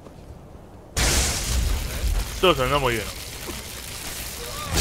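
Crackling lightning sparks and buzzes loudly.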